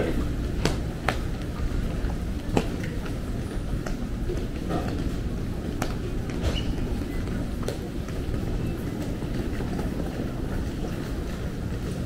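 Suitcase wheels roll over tiles.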